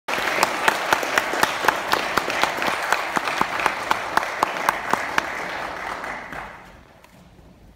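An audience applauds in a large hall, then the clapping fades away.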